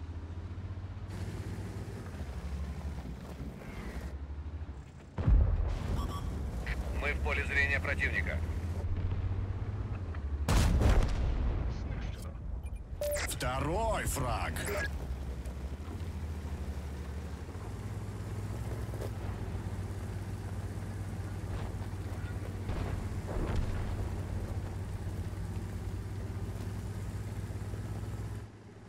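A heavy tank engine rumbles low and steadily.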